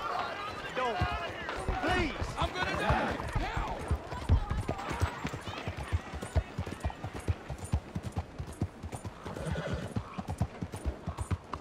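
Horse hooves clop steadily on a hard street.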